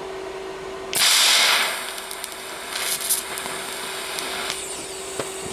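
A TIG welding arc hisses and buzzes on steel.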